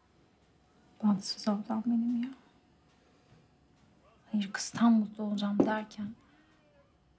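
A young woman speaks quietly and hesitantly, close by.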